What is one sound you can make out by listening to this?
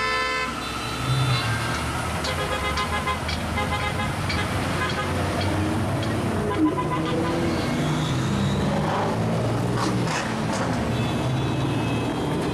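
A sports car engine revs loudly.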